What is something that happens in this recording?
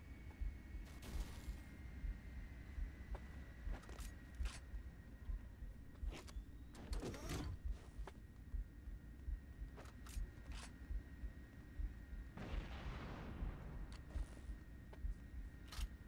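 Sharp gunshots crack now and then.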